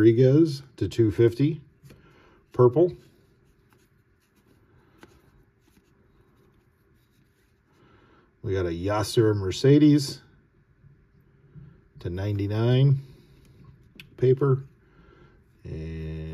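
Stiff trading cards slide and rustle softly as a hand flips through a stack.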